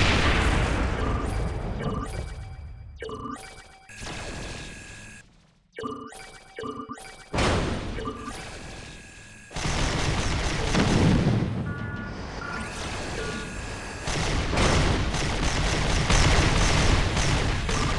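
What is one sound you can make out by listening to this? A spaceship's engine hums.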